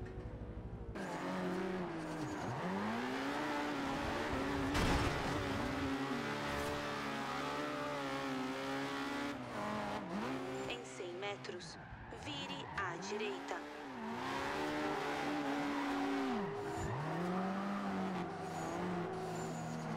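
A racing car engine revs hard through gear changes.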